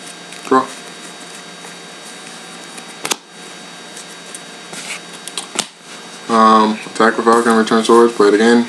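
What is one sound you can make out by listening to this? Playing cards tap and slide onto a soft mat.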